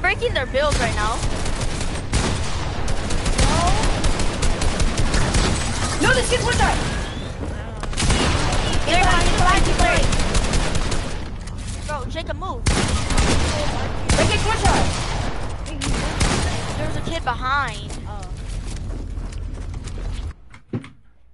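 Gunshots crack rapidly, one after another.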